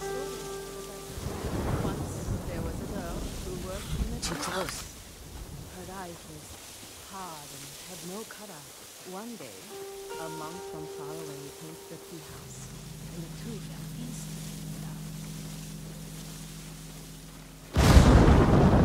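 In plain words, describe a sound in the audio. Wind blows hard through tall grass outdoors.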